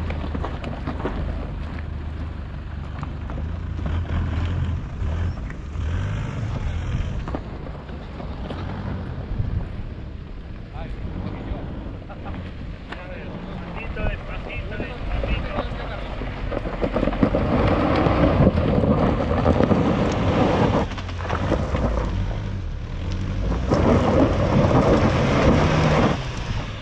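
Tyres crunch over loose stones and dirt.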